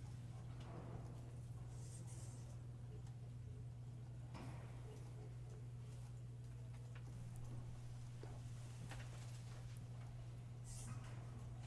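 Paper rustles softly as pages are handled.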